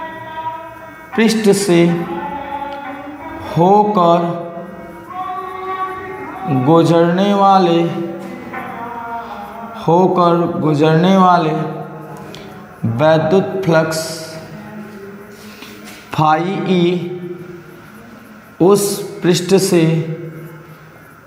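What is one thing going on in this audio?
A young man speaks in a calm, lecturing voice close by.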